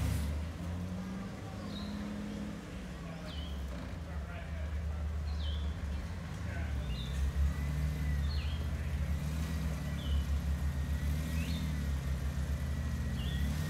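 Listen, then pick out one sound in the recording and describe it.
A jeep engine rumbles low as it crawls over rocks.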